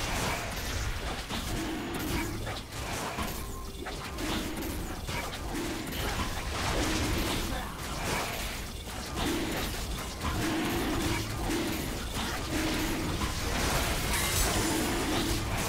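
Magic spells whoosh and crackle in a fast fight.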